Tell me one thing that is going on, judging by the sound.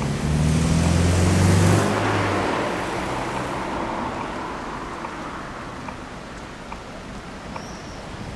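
A tram rolls slowly along the rails and comes to a stop.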